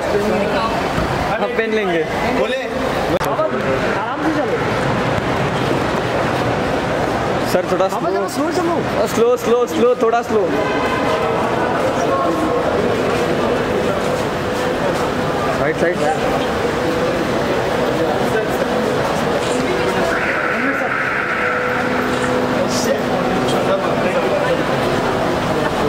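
A crowd of men and women chatters and calls out loudly all around.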